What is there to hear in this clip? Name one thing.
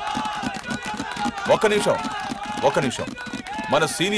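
A crowd of men claps their hands.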